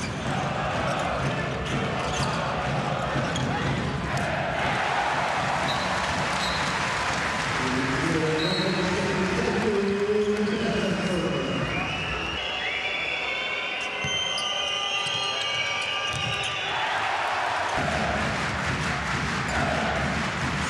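A large crowd roars and chants in an echoing hall.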